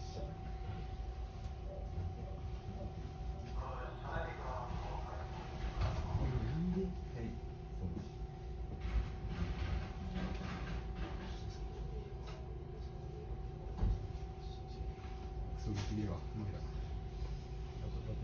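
A train's motor whines with a steady tone.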